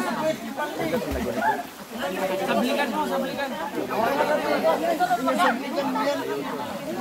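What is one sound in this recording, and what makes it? A crowd of men, women and children chatter and call out close by, outdoors.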